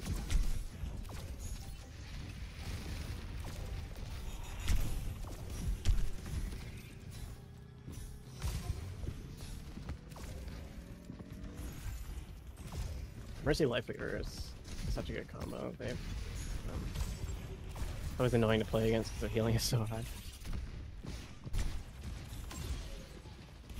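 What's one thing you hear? Rapid gunfire and blasts crackle from a video game throughout.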